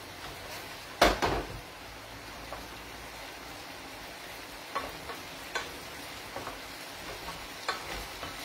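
A wooden spatula scrapes and clinks against a frying pan.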